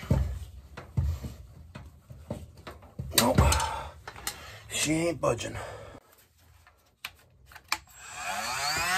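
Metal parts click and rattle as hands handle them.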